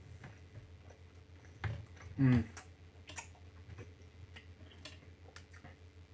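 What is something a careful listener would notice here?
A man chews gummy candy close by.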